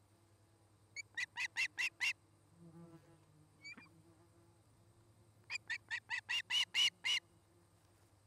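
A bird gives rapid bursts of shrill, repeated piping cries close by.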